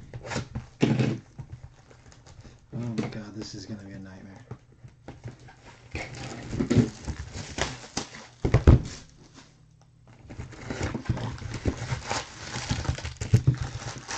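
Plastic wrap crinkles and rustles.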